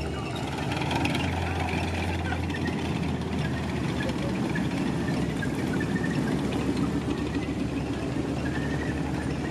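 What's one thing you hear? Tank tracks clatter on the street.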